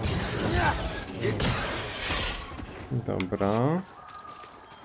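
A lightsaber hums and swings.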